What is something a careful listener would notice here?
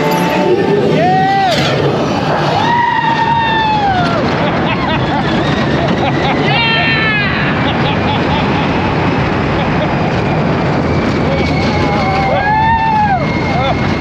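A young woman screams and cheers excitedly close by.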